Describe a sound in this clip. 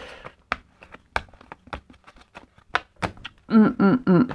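Cards riffle and tap together in quick, crisp snaps.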